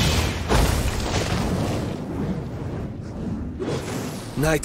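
A flaming blade swings with a roaring whoosh of fire.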